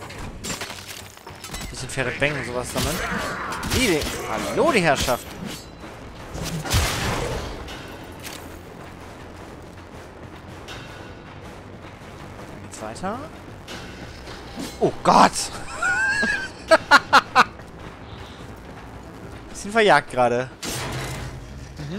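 Sword blows slash and strike in a fierce fight.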